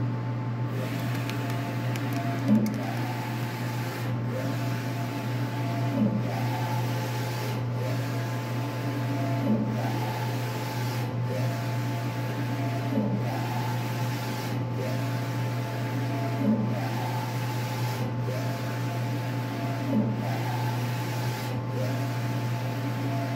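A large printer hums steadily.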